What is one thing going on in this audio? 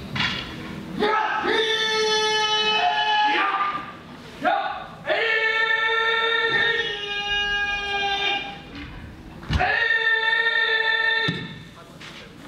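A man calls out in long, drawn-out, ringing shouts in a large echoing hall.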